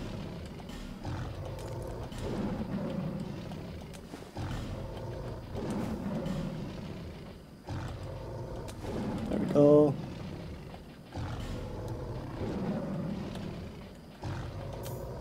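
Soft menu clicks sound as items are selected.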